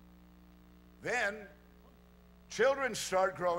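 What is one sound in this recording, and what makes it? A middle-aged man speaks calmly through a microphone and loudspeakers.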